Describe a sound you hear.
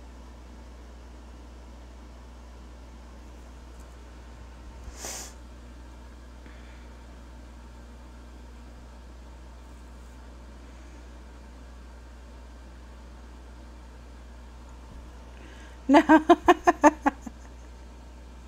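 A marker squeaks softly across paper.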